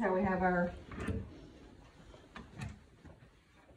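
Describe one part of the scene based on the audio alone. A cabinet door clicks and swings open.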